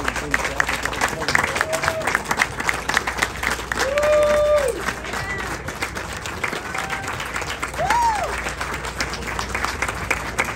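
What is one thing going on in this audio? An audience claps and applauds steadily in a hall.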